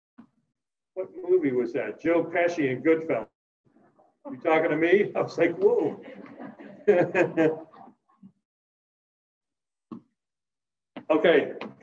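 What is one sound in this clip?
A man speaks nearby through a face mask, in short bursts.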